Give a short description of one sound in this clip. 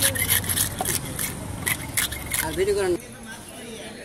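A wooden scraper rasps scales off a large fish.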